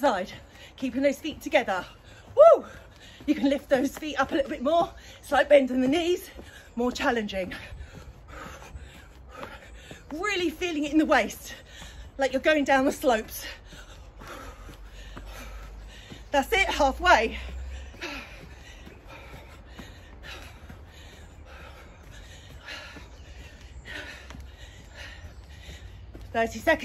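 Feet thud lightly on a mat as a woman hops.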